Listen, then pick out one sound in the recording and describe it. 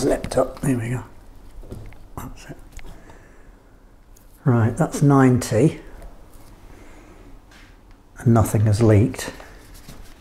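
An older man speaks calmly into a close microphone, in short bursts.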